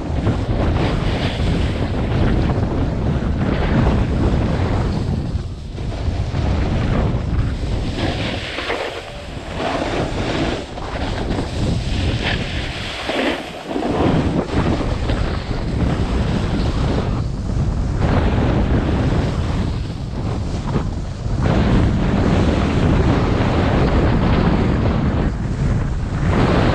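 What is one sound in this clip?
Wind roars loudly past the listener, rising and dropping in gusts.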